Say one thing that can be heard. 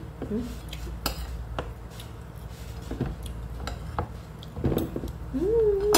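A fork scrapes and clinks against a plate.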